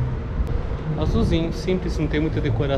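A man speaks calmly, close by, in a large echoing hall.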